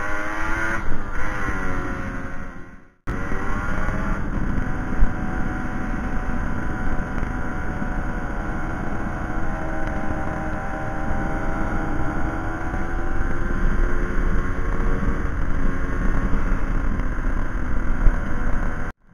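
A motorcycle engine hums steadily, its pitch rising and falling with speed.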